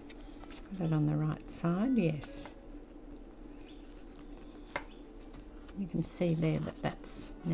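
Paper pages rustle softly as they are handled.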